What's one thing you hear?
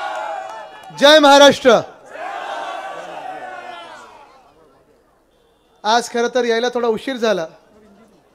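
A young man speaks loudly and with animation through a microphone and loudspeakers.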